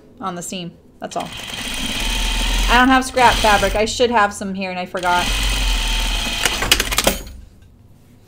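A sewing machine runs with a steady whirr.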